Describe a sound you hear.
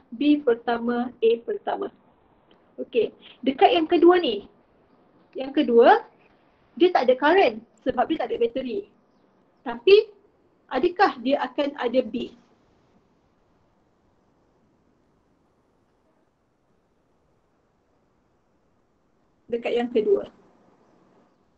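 A young woman speaks calmly over an online call, explaining.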